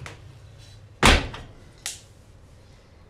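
An oven door bangs shut.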